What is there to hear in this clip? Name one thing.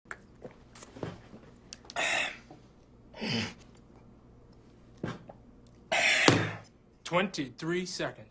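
A man groans and gasps in pain.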